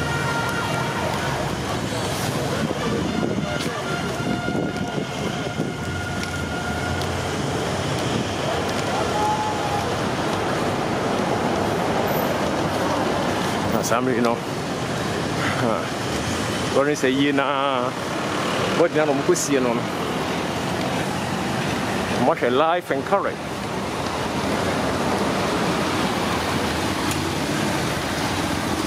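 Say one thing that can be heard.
Car engines idle and hum in slow traffic nearby.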